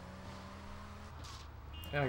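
Tyres screech as a car skids around a corner.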